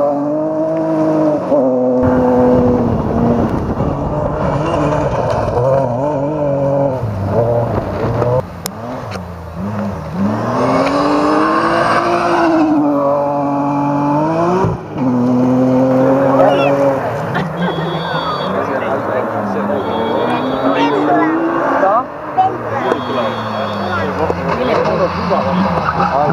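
A rally car engine roars at high revs, rising and falling as it shifts gears.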